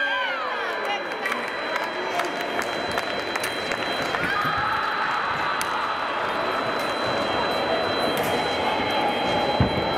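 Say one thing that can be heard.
Fencers' feet thud and squeak on the floor.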